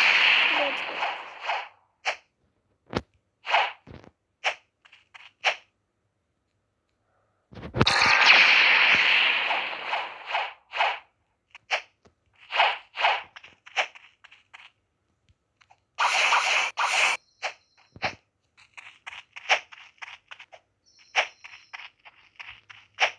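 A blade swishes through the air again and again.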